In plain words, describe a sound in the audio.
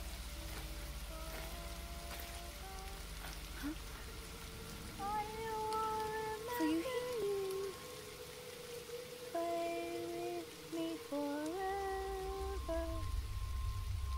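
A girl speaks softly and slowly in a hushed, echoing voice.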